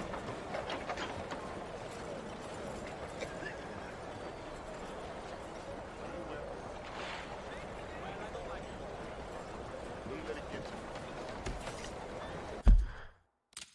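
Distant street bustle murmurs steadily outdoors.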